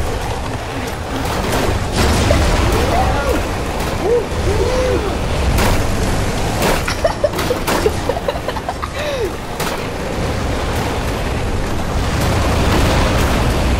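Vehicles crash and clatter against each other.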